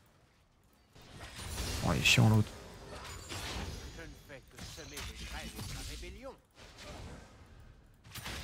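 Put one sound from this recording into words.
Game sound effects of fighting clash and burst.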